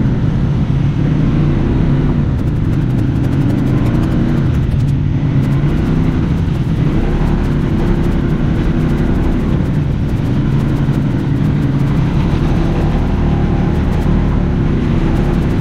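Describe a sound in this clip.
An off-road vehicle's engine drones steadily close by.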